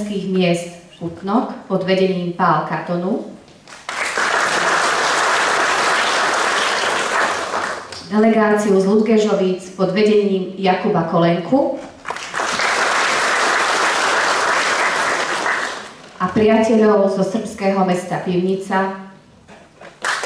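A woman reads out through a microphone and loudspeakers in a large hall.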